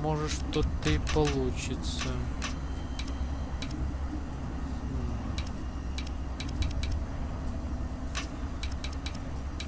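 Metal rings click and grind as they turn.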